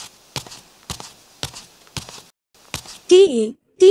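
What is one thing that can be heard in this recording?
Sandals tap on pavement in slow footsteps.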